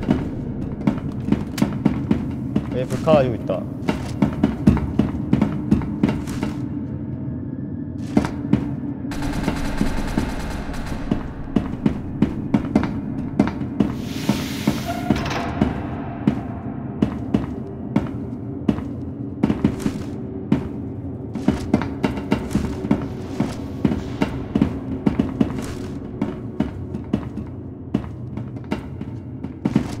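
Footsteps tread quickly and steadily on a hard floor.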